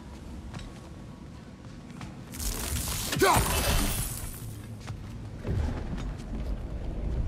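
Heavy footsteps thud on a stone floor.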